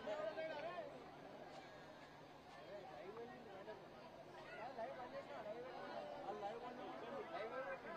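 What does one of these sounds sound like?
A man speaks into a microphone over loudspeakers, addressing a crowd outdoors.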